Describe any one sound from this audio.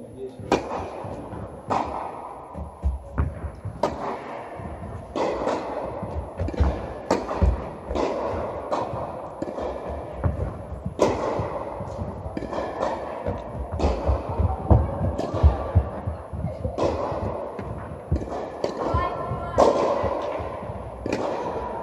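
Tennis balls bounce on the court.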